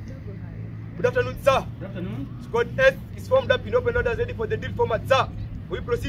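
A man shouts loud drill commands outdoors.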